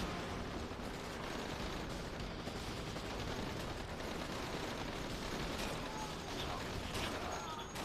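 An assault rifle fires in a video game.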